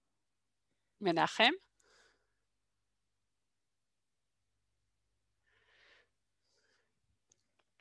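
A woman speaks briefly over an online call, with pauses.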